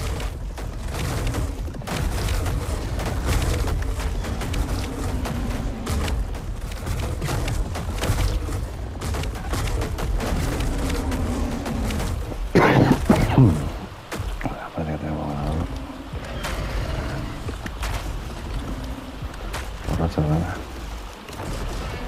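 Heavy blows thud and crunch in a fight between dinosaurs.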